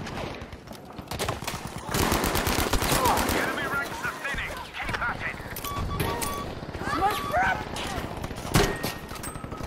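A rifle fires in rapid, loud shots.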